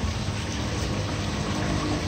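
A small fountain splashes into a pond.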